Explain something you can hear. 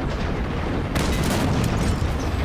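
A tank cannon fires with a heavy blast.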